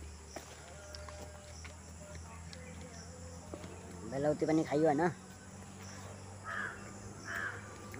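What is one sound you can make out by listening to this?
A young man bites into crisp fruit and chews.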